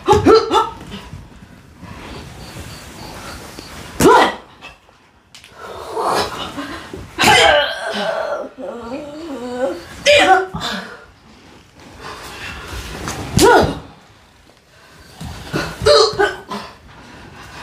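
Women shout sharply in short, loud bursts.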